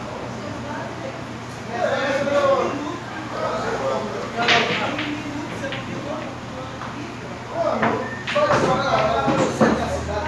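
Pool balls clack together on a table.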